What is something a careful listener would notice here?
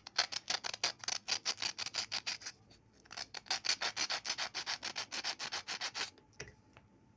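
A small file scrapes rapidly back and forth on metal.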